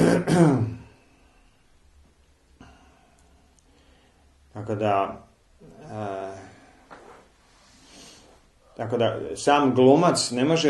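A man speaks calmly and close by, pausing between phrases.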